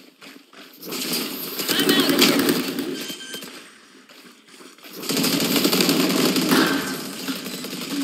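A flash grenade bursts with a loud, bright hiss.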